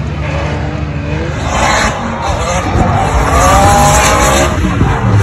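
A racing car engine revs loudly and whines through a drift.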